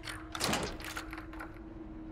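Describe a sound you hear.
A door handle rattles as it turns.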